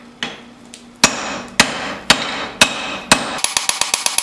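Heavy hammer blows strike hot steel on an anvil.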